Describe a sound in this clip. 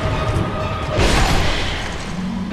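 A heavy weapon strikes an armoured body with a loud crash.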